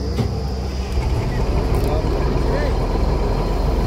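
A drilling rig engine revs up louder with a rougher roar.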